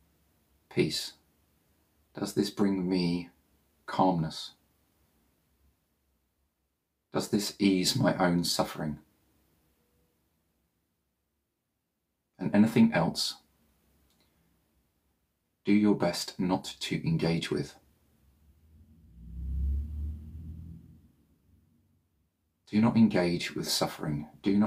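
A man speaks slowly and calmly, close to a microphone, with long pauses.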